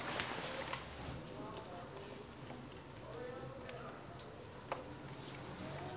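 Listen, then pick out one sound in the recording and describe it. Telephone buttons click as someone dials.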